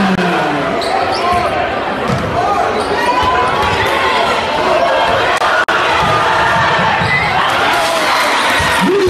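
A basketball thumps on the court floor.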